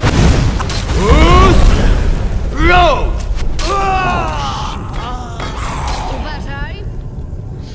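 A creature shrieks and groans.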